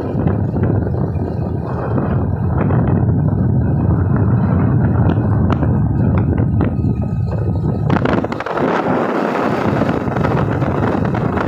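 A vehicle's engine and tyres rumble steadily on the road from inside.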